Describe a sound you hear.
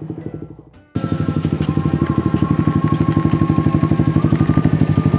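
A motorcycle engine idles close by with a steady throb.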